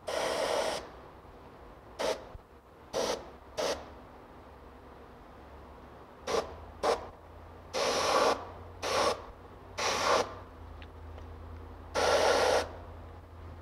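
An airbrush sprays in short hissing bursts.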